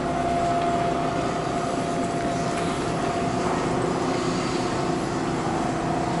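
A tram rolls slowly into the platform with a low rumble.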